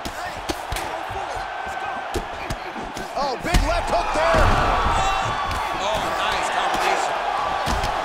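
Punches thud against a body in quick blows.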